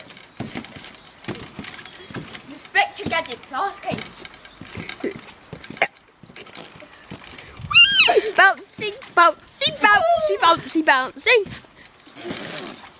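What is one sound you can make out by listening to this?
A trampoline mat thumps and creaks as a boy bounces on it.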